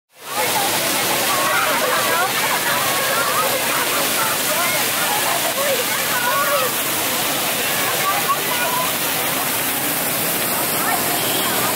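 Fountain jets splash and spray onto wet paving.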